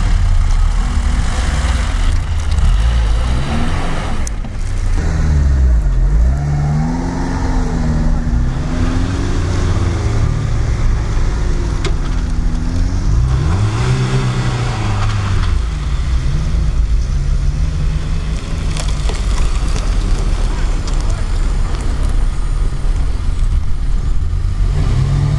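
A car engine revs and strains as the car drives over rough ground.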